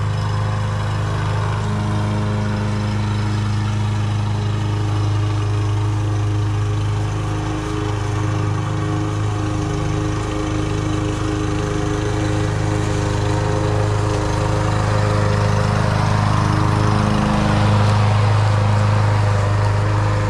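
A petrol lawn mower engine drones steadily, growing louder as it comes close.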